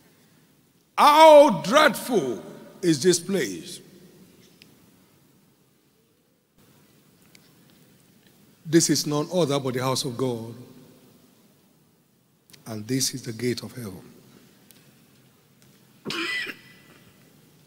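An elderly man preaches with emphasis into a microphone, in short bursts with long pauses.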